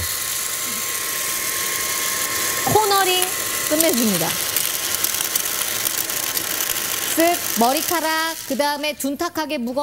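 A cordless vacuum cleaner hums steadily.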